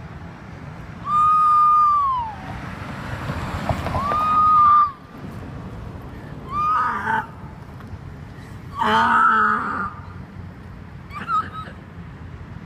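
A woman wails and moans in pain close by.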